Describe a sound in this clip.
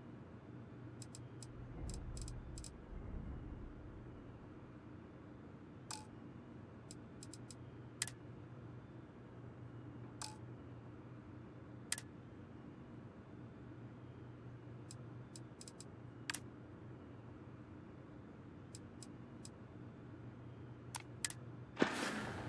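Short soft menu clicks sound now and then.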